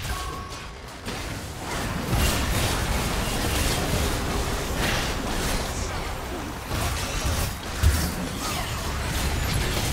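Spell effects whoosh and blast in a fast fight.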